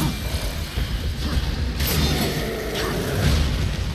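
Heavy metal blows clash and thud in a fight.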